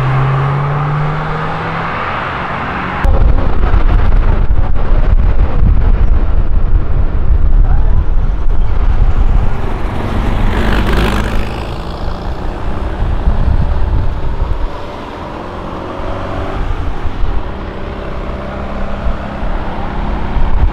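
A small car engine hums and revs as the car drives past.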